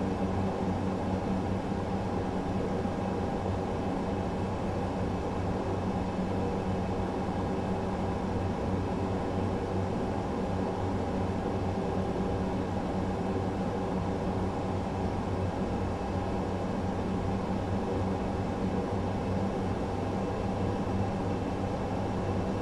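Jet engines drone steadily inside an aircraft cockpit.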